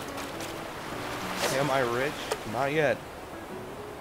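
A fishing line is cast and its float plops into water.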